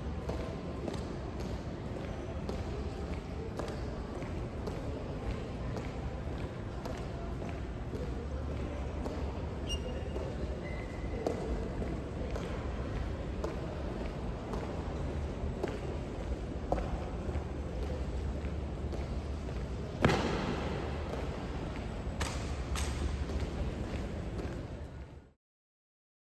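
Boots stamp in step on a hard floor in a large echoing hall.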